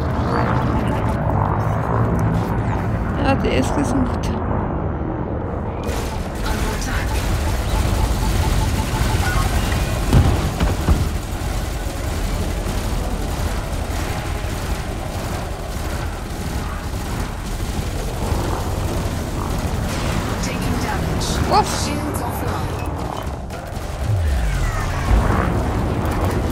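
A spaceship engine hums with a deep, steady rumble.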